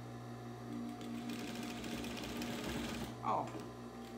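A sewing machine whirs as it stitches fabric.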